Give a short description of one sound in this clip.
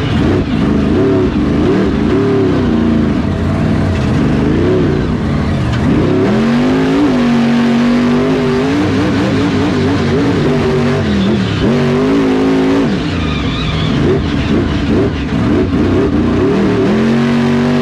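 A monster truck engine roars loudly close by, revving up and down.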